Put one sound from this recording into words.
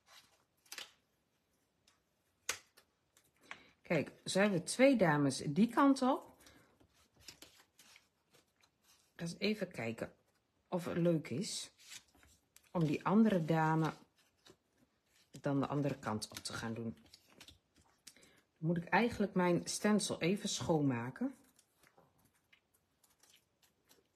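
Paper cards rustle and tap softly on a table.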